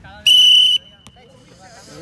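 A football is kicked on artificial turf.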